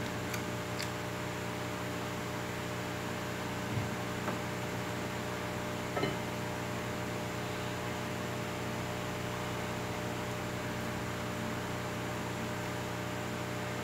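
A man chews food with soft, wet smacking sounds.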